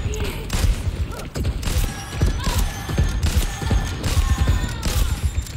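A gun fires in rapid bursts of sharp shots.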